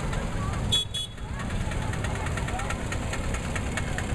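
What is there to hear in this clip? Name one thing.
An auto rickshaw engine putters past close by.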